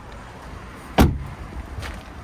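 A car door shuts with a heavy thud.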